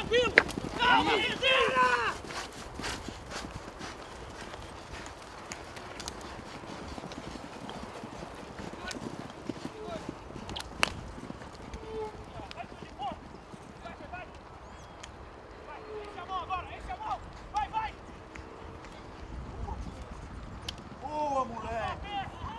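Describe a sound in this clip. Horses' hooves thud on turf as they gallop.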